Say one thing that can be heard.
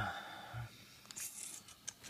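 Foil card packs rustle as a hand handles them.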